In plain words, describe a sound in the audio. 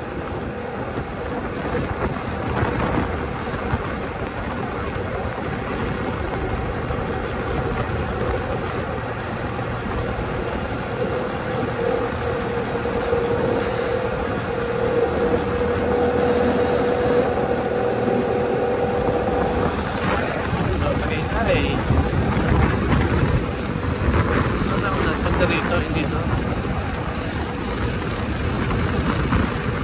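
Wind rushes past steadily outdoors.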